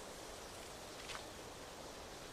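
A book page turns with a soft papery rustle.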